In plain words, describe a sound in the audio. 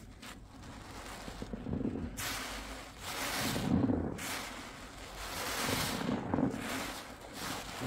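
A wet sponge squelches as it is squeezed.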